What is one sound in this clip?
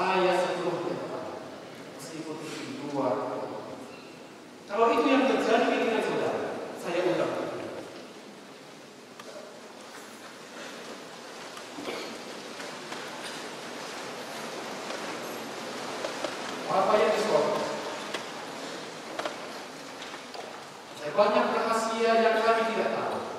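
A man speaks into a microphone at a lectern, his voice echoing in a large hall.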